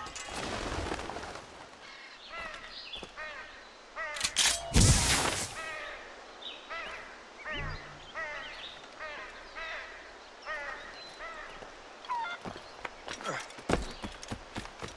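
Footsteps clatter across clay roof tiles.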